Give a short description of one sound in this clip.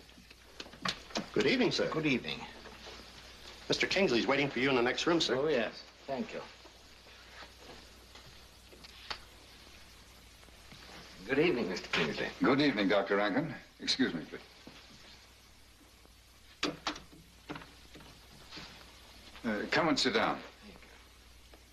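Two elderly men talk calmly.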